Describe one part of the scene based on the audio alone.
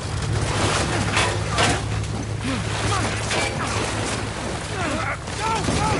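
Strong wind roars outside.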